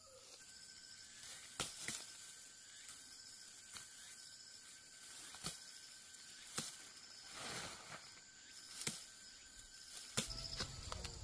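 A person rustles through ferns and leaves.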